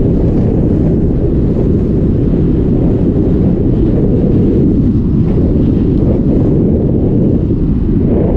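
Strong wind rushes and buffets a microphone.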